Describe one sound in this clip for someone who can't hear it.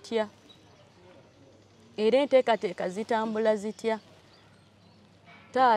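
A young woman speaks calmly into a clip-on microphone, close by.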